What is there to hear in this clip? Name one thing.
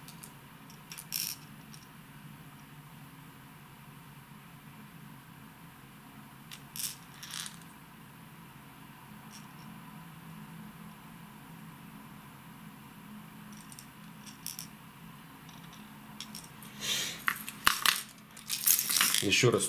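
Hard plastic fishing lures click and tap as a hand handles them.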